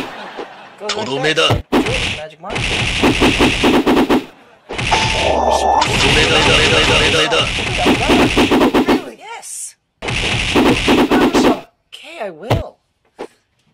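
Punches and kicks land with sharp smacks in quick bursts.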